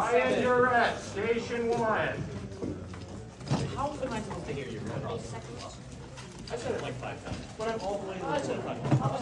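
Young men and women chat casually nearby in a busy room.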